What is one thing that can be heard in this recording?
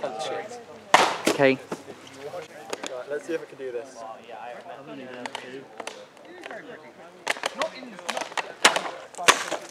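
A whip cracks sharply several times.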